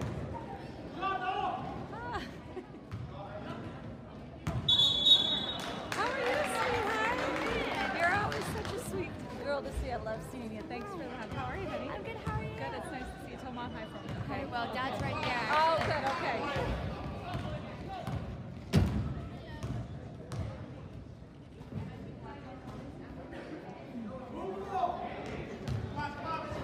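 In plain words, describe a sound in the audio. A crowd cheers and calls out in an echoing gym.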